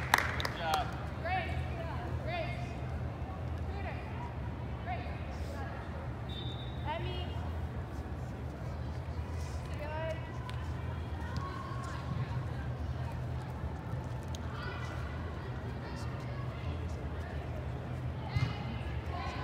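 Young women players call out to each other across a large echoing hall.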